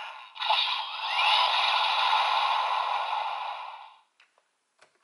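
A toy blade plays a loud electronic sound effect.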